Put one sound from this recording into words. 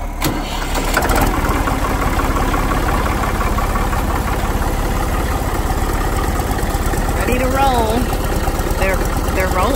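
A tractor engine rumbles steadily at idle.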